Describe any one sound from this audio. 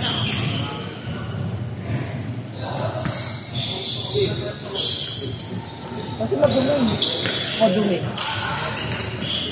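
A basketball bounces on the floor, echoing in a large hall.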